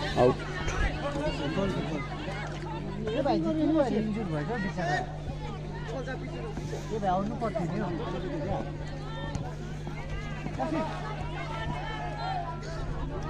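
A crowd of spectators chatters and shouts outdoors.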